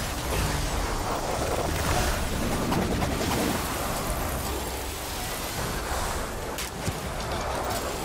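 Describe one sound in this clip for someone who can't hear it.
Magic blasts crackle and burst in quick succession.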